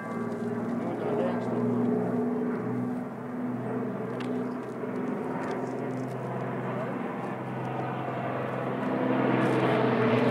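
A large propeller plane drones overhead, its engines growing louder as it approaches.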